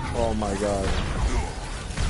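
Gunfire clatters in rapid bursts.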